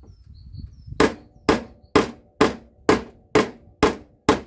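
A hammer strikes metal in a steady rhythm.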